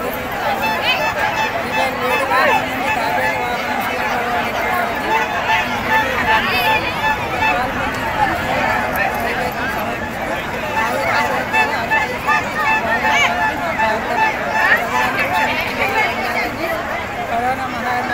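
A middle-aged woman speaks steadily into a microphone close by.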